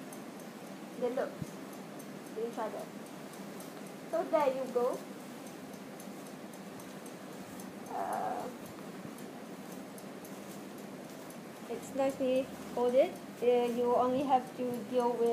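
A young woman speaks in short bursts nearby.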